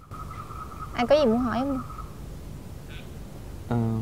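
A young man speaks softly up close.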